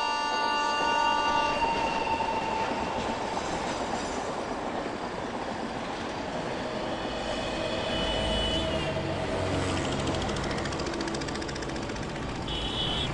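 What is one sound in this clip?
Traffic rumbles past on a road at night.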